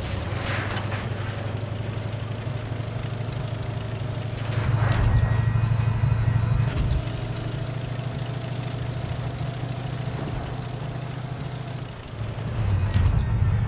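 A tank cannon fires with a sharp boom.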